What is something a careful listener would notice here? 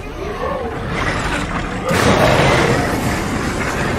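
A heavy metal gate creaks open.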